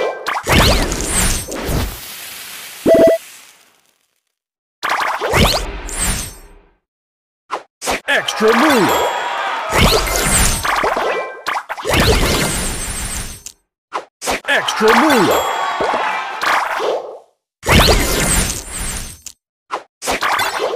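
Puzzle game pieces pop and chime in quick bursts of bright sound effects.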